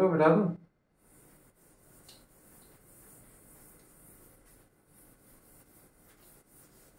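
A cloth rubs across a chalkboard, erasing it.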